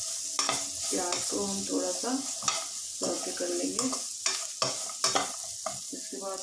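Food sizzles in hot oil.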